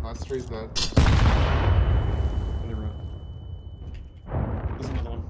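A sniper rifle fires a loud shot that echoes and fades.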